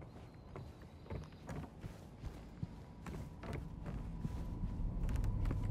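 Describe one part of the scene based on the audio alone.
Footsteps thud slowly on a wooden floor.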